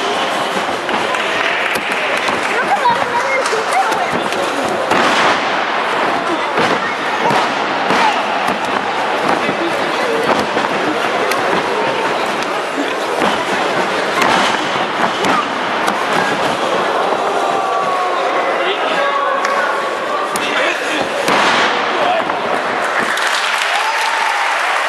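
A crowd cheers and shouts throughout a large echoing hall.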